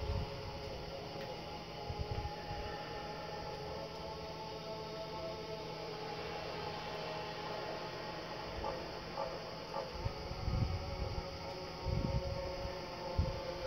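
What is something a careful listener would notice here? Eerie game music and ambience play from a television speaker.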